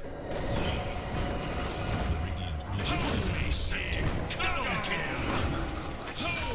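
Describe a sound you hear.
Spell blasts and clashing effects from a video game battle ring out.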